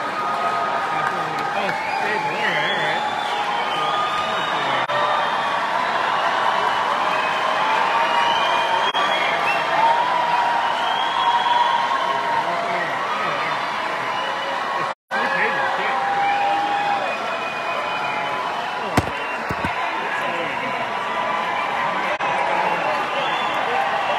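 A large crowd chatters and calls out loudly outdoors.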